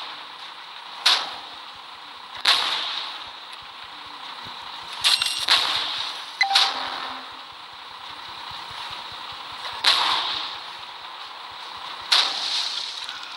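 Tank cannons fire in loud, sharp blasts now and then.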